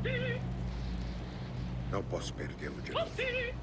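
A fire crackles softly in a brazier.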